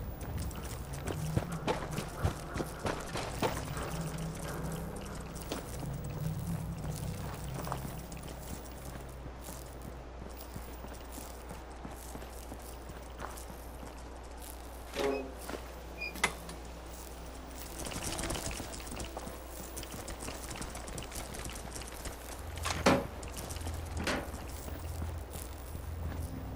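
Footsteps crunch on rubble and pavement at a steady pace.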